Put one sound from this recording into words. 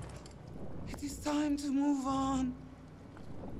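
A woman speaks with strain, close by.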